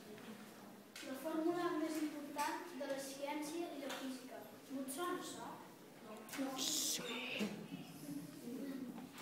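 A boy speaks clearly in a small room.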